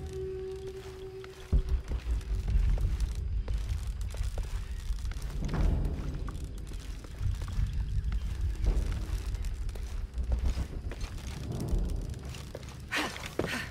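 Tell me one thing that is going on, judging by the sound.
Footsteps crunch over stone and grass.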